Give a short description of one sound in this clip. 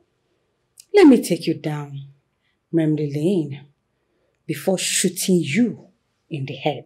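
A woman speaks firmly nearby.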